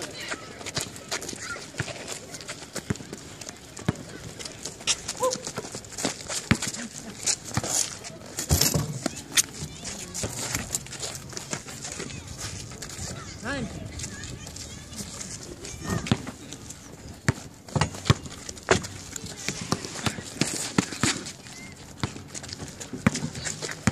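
A basketball bounces on outdoor asphalt.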